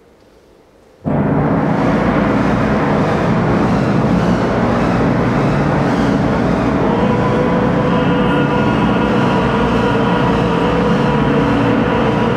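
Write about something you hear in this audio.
A wind instrument plays a dense, sustained passage.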